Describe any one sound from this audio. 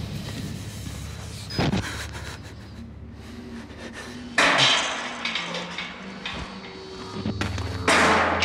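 A chain-link fence rattles as a man grabs and shakes it.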